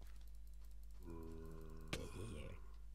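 A zombie groans nearby.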